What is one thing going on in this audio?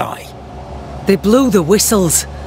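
A woman answers coldly.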